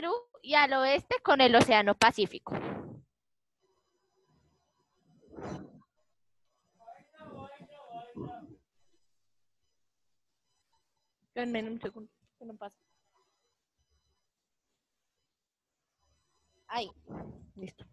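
A young woman speaks with animation over an online call, in short bursts with pauses.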